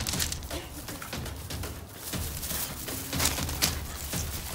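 Small dogs growl while playfully wrestling.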